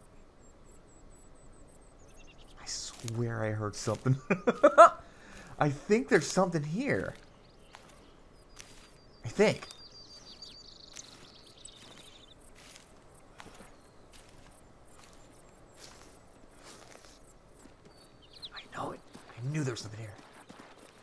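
Footsteps rustle through low undergrowth.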